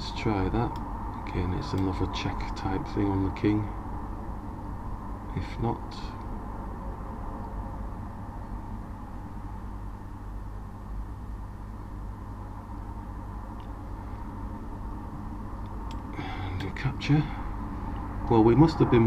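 A middle-aged man speaks calmly and thoughtfully into a microphone, with long pauses.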